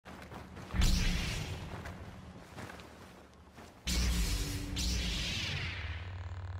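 A lightsaber swooshes through the air.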